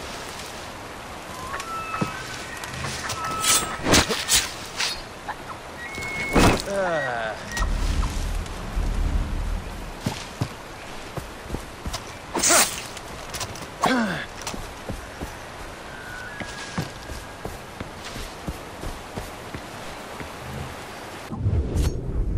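Leaves and grass rustle as someone pushes through thick bushes.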